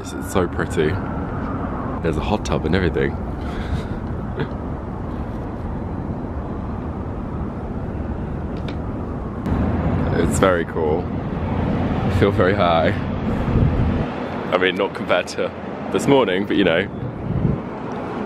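City traffic hums steadily far below.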